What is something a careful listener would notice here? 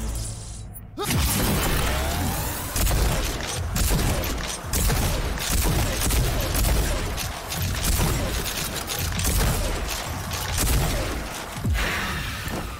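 Shotgun blasts boom again and again.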